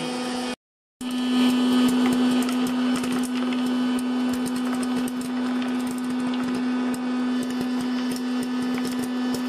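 A popcorn machine hums steadily.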